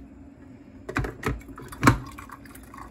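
A glass carafe clunks down onto a coffee maker's base.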